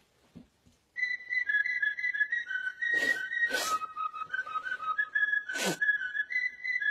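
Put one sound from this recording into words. A smoke alarm beeps in shrill tones.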